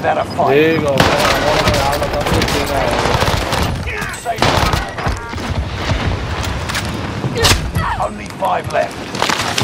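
Rapid gunshots crack and rattle.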